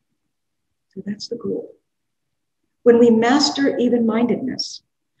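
An elderly woman speaks calmly through a microphone in an online call.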